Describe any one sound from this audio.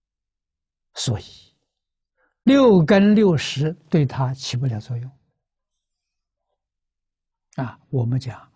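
An elderly man speaks calmly, close to a microphone, with pauses.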